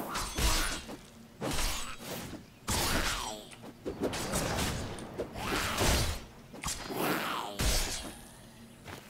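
Magic spells whoosh and crackle in bursts during a fight.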